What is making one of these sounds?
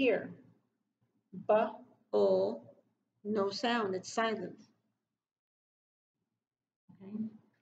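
A woman speaks clearly and slowly, close by.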